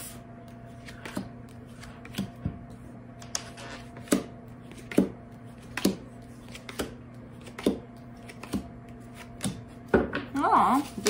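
Cards tap and slap softly onto a table.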